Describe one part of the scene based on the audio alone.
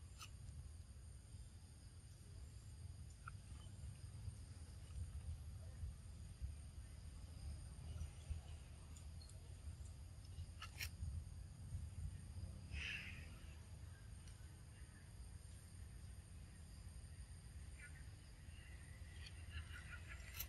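A baby monkey scrambles over rock.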